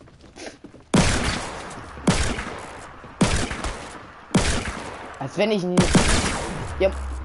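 Loud gunshots ring out one at a time, with short echoing tails.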